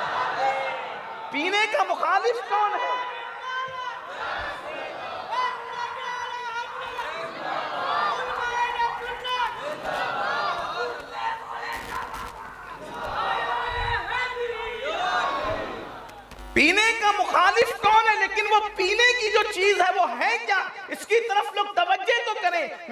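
A man preaches with animation into a microphone, his voice ringing through loudspeakers in a large echoing space.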